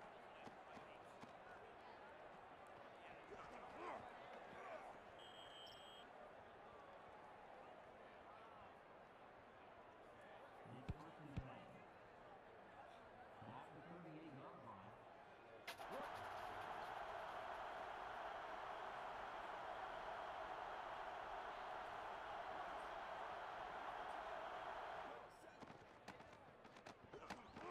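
A large stadium crowd murmurs and then roars loudly for a long stretch.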